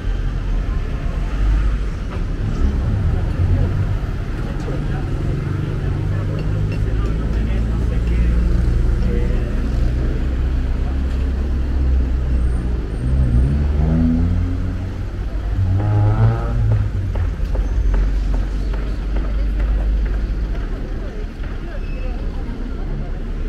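Traffic rumbles along a busy city street.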